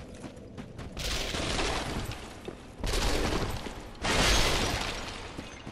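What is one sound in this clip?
A sword swings and slashes with a whoosh.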